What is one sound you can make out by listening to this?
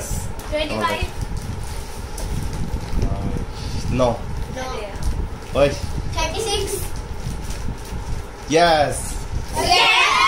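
Young children speak and laugh playfully close by.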